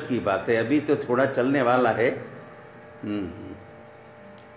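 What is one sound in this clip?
An elderly man speaks firmly through a microphone and loudspeakers.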